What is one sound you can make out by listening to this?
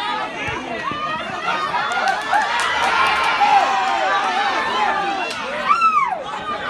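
Young men cheer loudly together.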